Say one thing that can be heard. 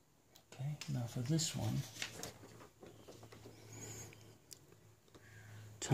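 A sheet of paper rustles as it slides across a table.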